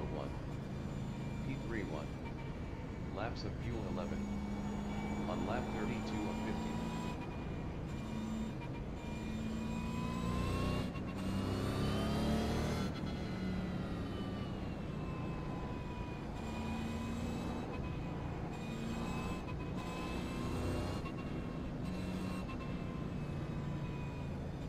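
A racing car engine roars, rising and falling as it shifts gears.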